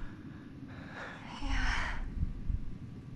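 A young woman answers weakly and breathlessly.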